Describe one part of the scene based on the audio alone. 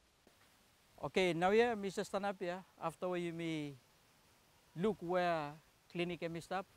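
A man speaks close by with animation, outdoors.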